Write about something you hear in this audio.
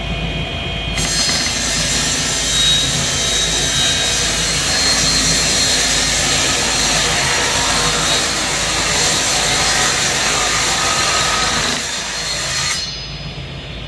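A table saw cuts through a plastic sheet with a loud, harsh screech.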